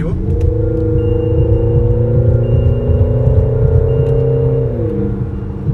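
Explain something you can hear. A car engine hums steadily from inside the car, its pitch dipping near the end.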